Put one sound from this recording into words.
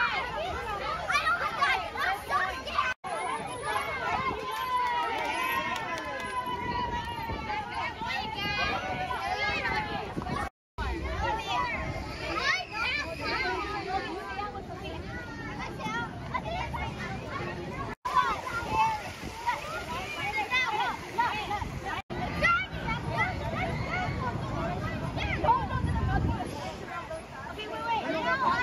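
Young girls talk and call out excitedly close by.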